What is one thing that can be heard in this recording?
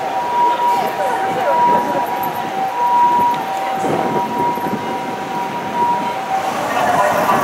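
An ambulance siren sounds a steady two-tone wail close by.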